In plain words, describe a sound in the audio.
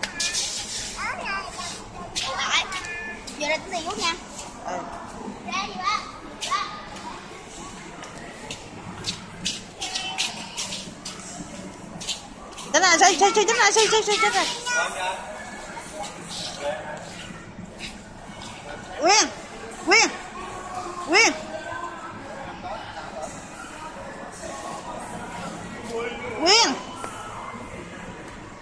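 A toddler girl babbles and squeals close by.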